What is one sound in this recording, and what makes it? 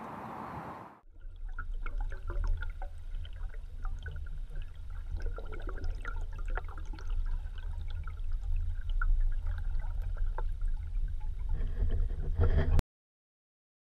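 Water rumbles low and crackles softly underwater.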